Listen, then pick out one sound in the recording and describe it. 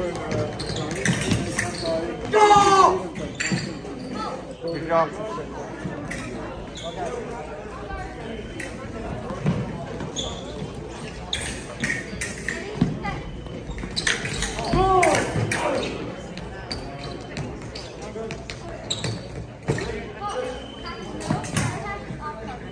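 Fencing blades clink and clash sharply.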